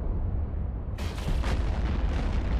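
A laser weapon fires in a sharp burst.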